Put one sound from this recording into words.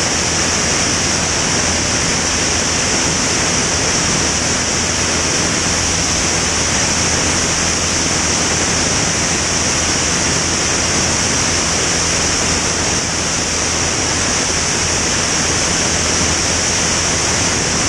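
A small propeller plane's engine drones loudly and steadily.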